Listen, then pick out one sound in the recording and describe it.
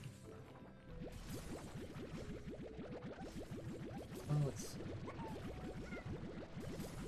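A game blaster fires rapid bursts of short chirping shots.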